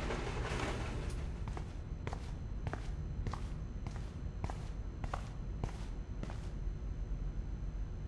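Footsteps tap slowly on a hard floor.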